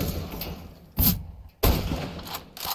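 A rifle fires with sharp, loud cracks.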